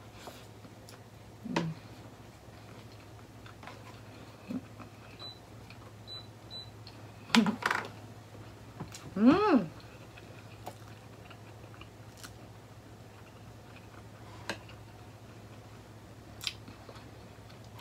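A young woman chews food with soft wet smacks.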